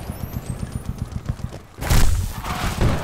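Defibrillator paddles discharge with a sharp electric jolt.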